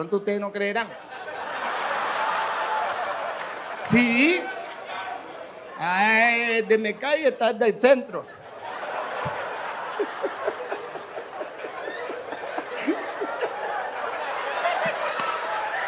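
A large audience laughs and cheers in a club.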